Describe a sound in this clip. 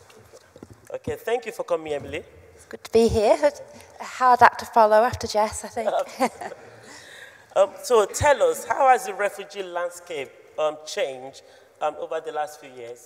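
A woman speaks calmly into a microphone, heard through loudspeakers in a large hall.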